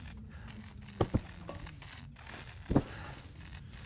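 Soft interface clicks and thumps sound as menu items are chosen.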